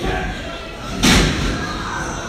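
A wrestler slams onto the ring mat with a loud thud.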